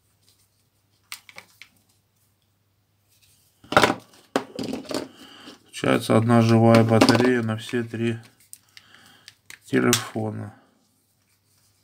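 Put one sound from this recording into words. Plastic parts of a mobile phone click and snap as they are pried apart and pressed together.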